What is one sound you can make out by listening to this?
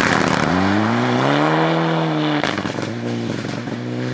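Gravel sprays and rattles under a car's tyres.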